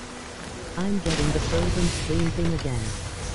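A musket fires with a loud bang.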